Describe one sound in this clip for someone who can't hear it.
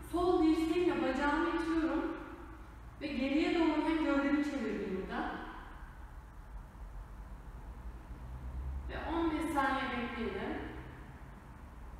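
A young woman speaks calmly, giving instructions in a room with a slight echo.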